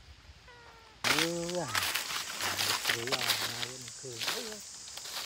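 Footsteps crunch loudly through dry leaves.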